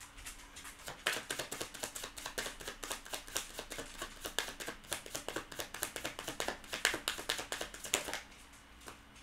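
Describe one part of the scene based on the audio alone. Playing cards are shuffled with quick riffling clicks.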